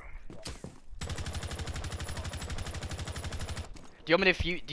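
A rifle fires a long rapid burst.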